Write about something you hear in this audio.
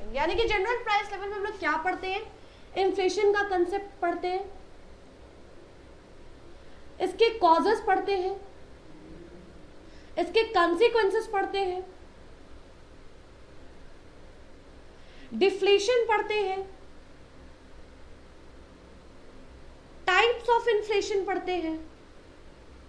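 A young woman speaks clearly in short phrases, close to a microphone.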